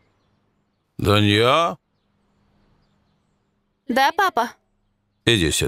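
A young woman calls out cheerfully.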